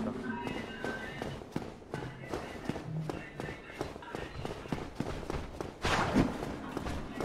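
Armored footsteps clank on stone stairs.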